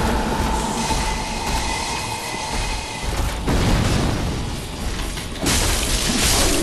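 Metal armour clanks as a heavy knight stomps about.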